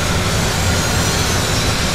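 Heavy spiked walls grind and rumble as they close in.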